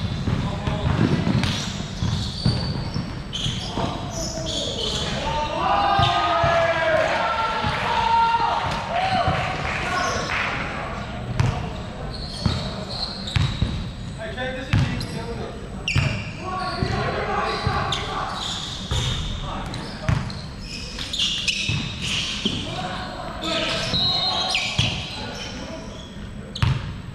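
Sneakers squeak on the floor.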